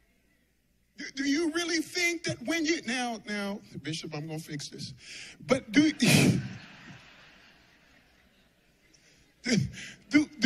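A man preaches with animation through a microphone, his voice echoing in a large hall.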